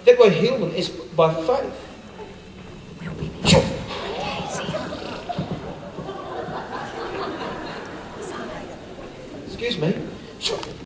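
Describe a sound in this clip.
An audience murmurs and chatters quietly.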